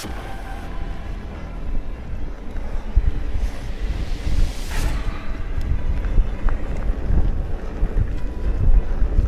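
Bicycle tyres crunch and rattle over a rough dirt track.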